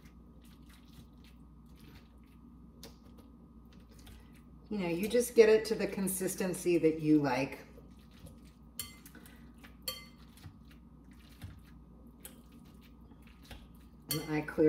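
Small clicks and taps come from food being mixed in a glass bowl.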